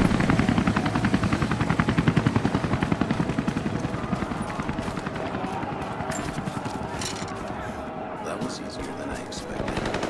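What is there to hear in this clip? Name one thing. Footsteps crunch on stony ground.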